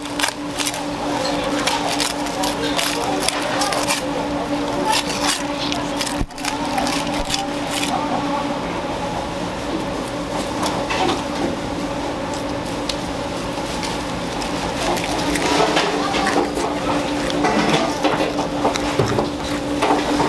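A knife scrapes and slices through raw meat and bone.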